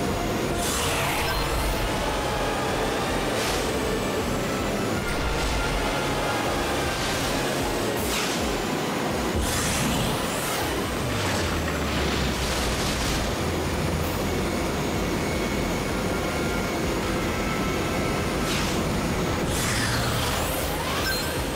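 Air whooshes past in quick bursts as the racer boosts.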